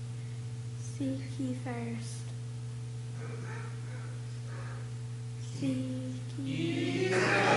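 A boy speaks through a microphone.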